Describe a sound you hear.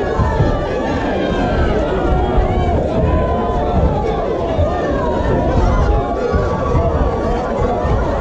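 Boxing gloves thud against a boxer's body.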